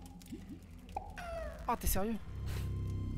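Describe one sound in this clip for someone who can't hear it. A magical sparkling burst sounds from a game.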